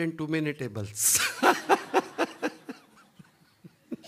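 An elderly man laughs into a microphone.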